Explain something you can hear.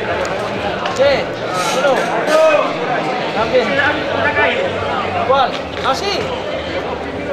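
A man shouts loudly close by.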